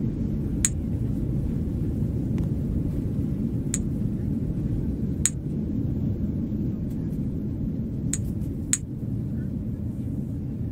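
An airplane cabin hums low and steadily.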